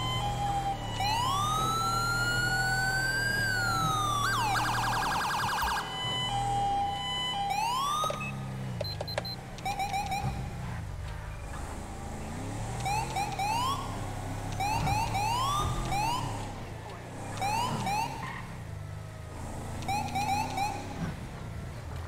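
A police siren wails, rising and falling, then yelps in quick bursts.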